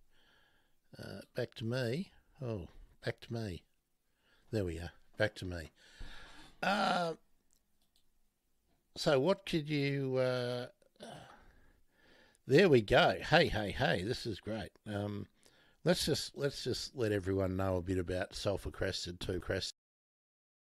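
An older man talks calmly through a microphone.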